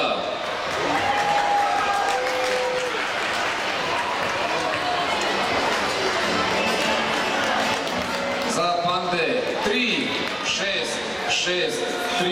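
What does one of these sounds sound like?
A large crowd of children and adults chatters throughout a big echoing hall.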